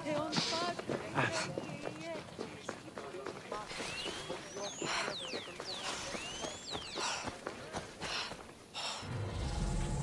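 Footsteps run over grass and dirt.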